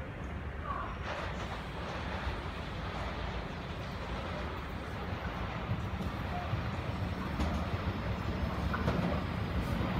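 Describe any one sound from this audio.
A train's wheels clatter and hiss on the rails as it draws near.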